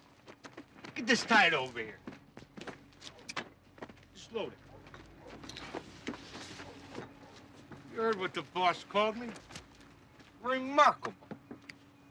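Another man answers calmly close by.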